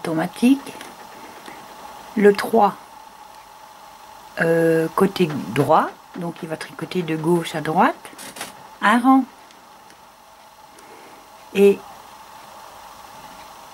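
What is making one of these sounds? Buttons click on a machine's control panel.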